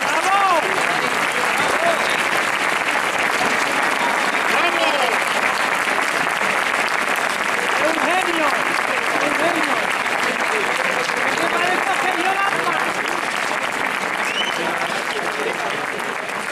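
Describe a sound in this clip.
People cheer and whoop among the applause.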